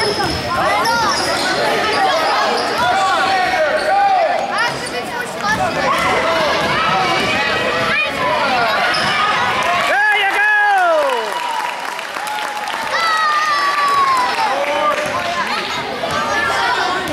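Sneakers squeak sharply on a wooden floor in a large echoing gym.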